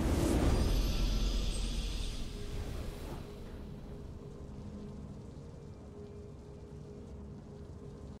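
A triumphant fanfare swells and then fades.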